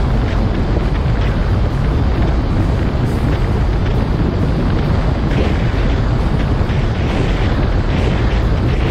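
Water rushes and splashes along a speeding boat's hull.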